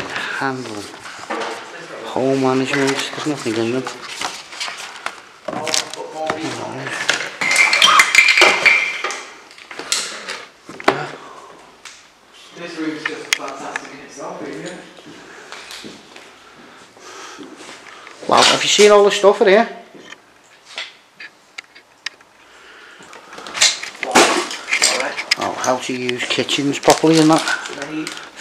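A man talks in a low voice nearby.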